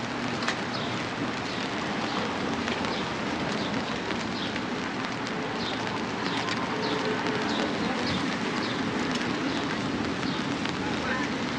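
Footsteps scuff along a brick pavement at a walking pace.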